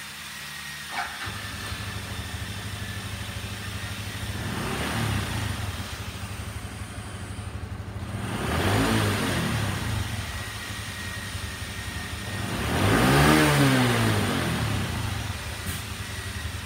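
A small motorcycle engine starts and idles steadily.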